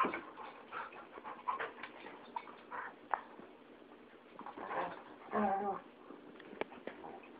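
A dog grumbles and huffs playfully at close range.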